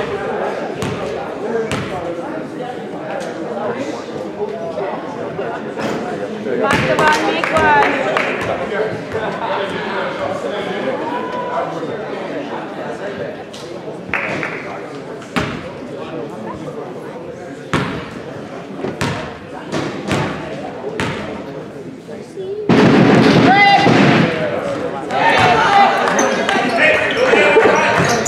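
A crowd chatters and echoes in a large gym.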